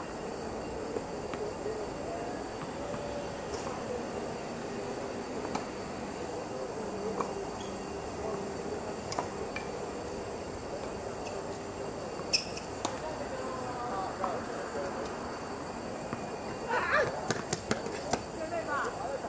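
Tennis rackets strike a ball back and forth outdoors.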